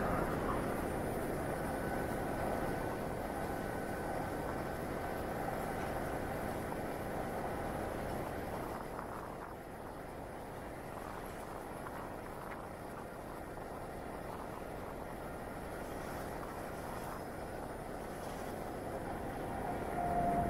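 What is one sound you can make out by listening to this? A car's engine hums steadily.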